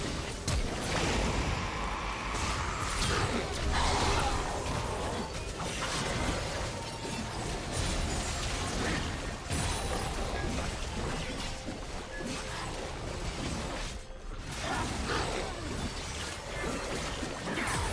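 Magic spells crackle and burst in a chaotic battle.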